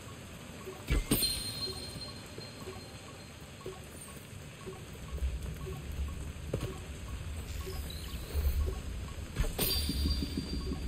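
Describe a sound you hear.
A bow string snaps as an arrow is loosed with a bright whoosh.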